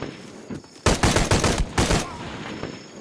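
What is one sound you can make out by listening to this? Rapid gunshots ring out loudly.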